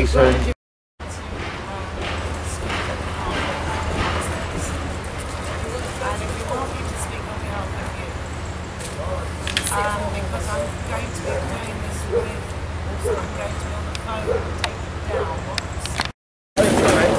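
Several people chat at a distance outdoors.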